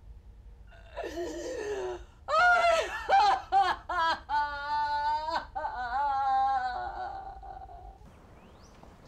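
An elderly woman wails and sobs close by.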